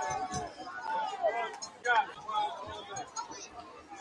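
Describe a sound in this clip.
Men on a sideline shout and call out nearby.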